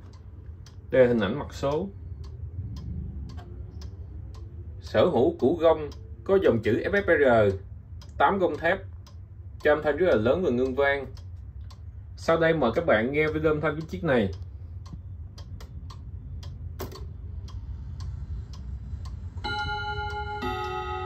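A pendulum clock ticks steadily.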